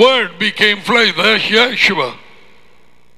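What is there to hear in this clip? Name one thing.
A man speaks calmly and close into a headset microphone.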